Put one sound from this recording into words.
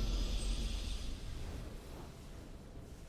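A bright victory fanfare from a video game rings out and fades away.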